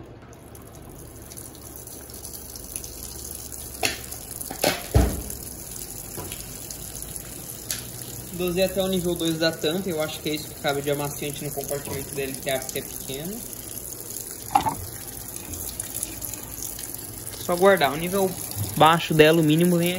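Water pours steadily into a washing machine tub.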